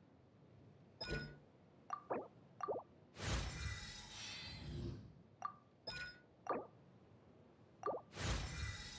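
Soft menu clicks tap several times.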